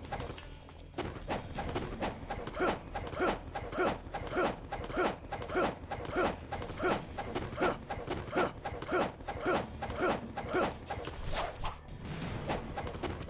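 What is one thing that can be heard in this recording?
Rapid footsteps patter up stone steps.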